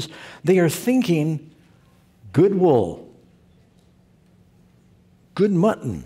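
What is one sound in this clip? An elderly man speaks emphatically through a headset microphone, with pauses.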